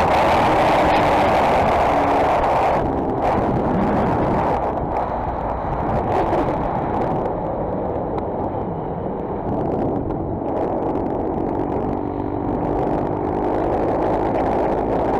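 A motorcycle engine hums steadily while riding at speed.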